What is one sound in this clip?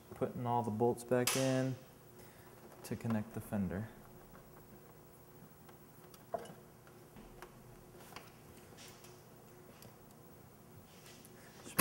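Metal tools click and tap faintly.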